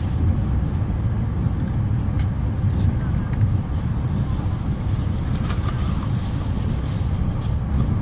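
An electric express train rumbles along at speed, heard from inside the carriage.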